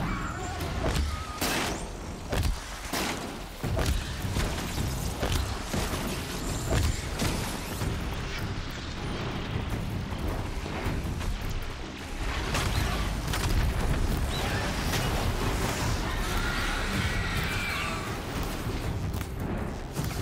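A bowstring twangs as arrows fly.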